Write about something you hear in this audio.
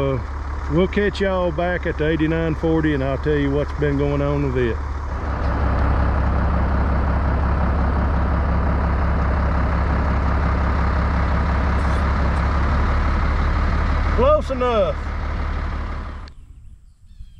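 A tractor engine drones steadily outdoors.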